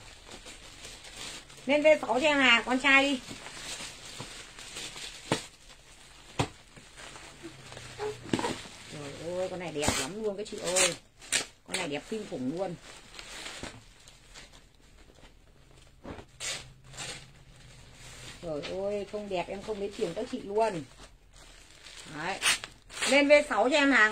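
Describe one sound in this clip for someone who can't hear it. Plastic clothing bags rustle and crinkle.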